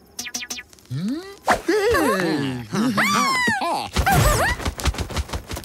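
A man laughs wildly and loudly.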